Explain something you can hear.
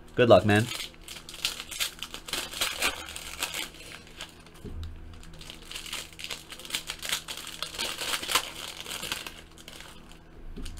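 Foil card packs crinkle and rustle as they are torn open.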